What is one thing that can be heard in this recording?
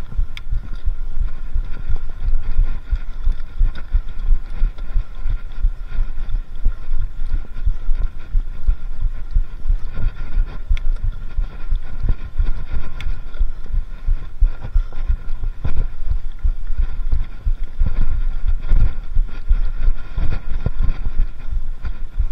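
Bicycle tyres roll and rattle over a bumpy dirt trail.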